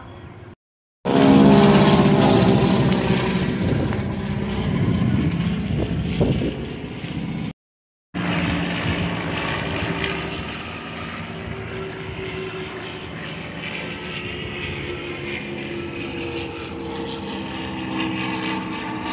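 Jet planes roar overhead, loud and then slowly fading.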